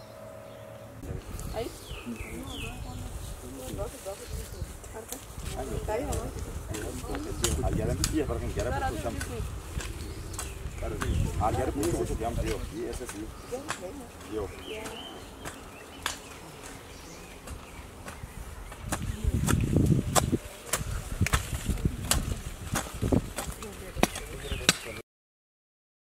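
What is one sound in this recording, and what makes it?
Hoes strike and scrape the soil.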